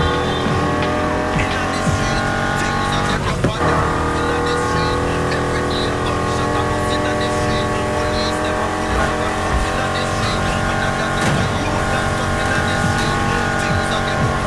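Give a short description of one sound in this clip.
A powerful car engine roars steadily at high speed.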